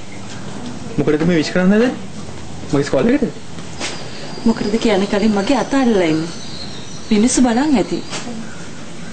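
A woman speaks warmly and cheerfully close by.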